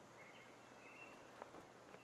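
A golf putter softly taps a ball.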